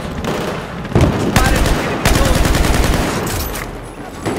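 Rapid rifle gunfire rattles in bursts.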